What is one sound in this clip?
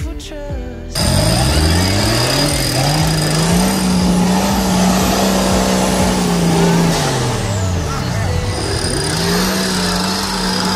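A truck engine revs hard and roars, rising and falling.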